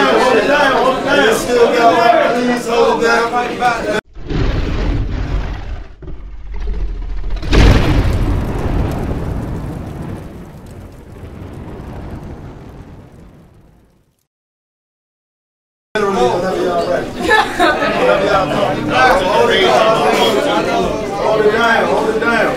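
A crowd of young men shouts and cheers loudly.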